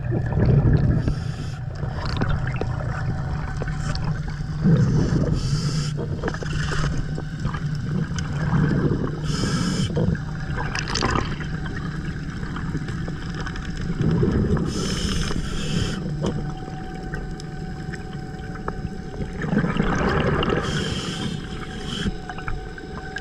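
A scuba diver breathes out in loud bubbling bursts every few seconds.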